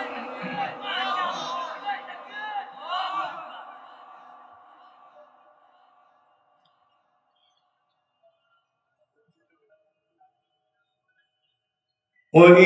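A man chants melodically into a microphone, his voice echoing through a large hall.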